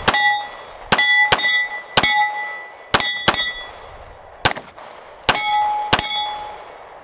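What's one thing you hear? A pistol fires a string of sharp shots outdoors that ring out across open ground.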